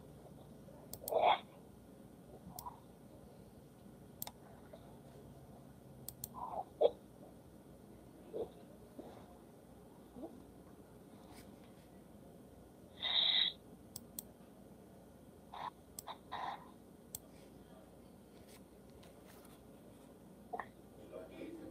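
A middle-aged woman sobs and whimpers close by in short bursts.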